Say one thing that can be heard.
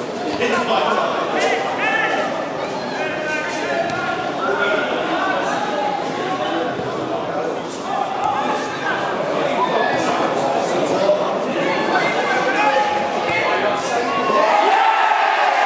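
Spectators shout and chatter outdoors.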